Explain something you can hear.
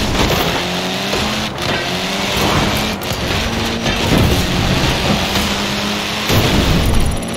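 A rally car engine revs hard, rising in pitch and dropping with each gear change.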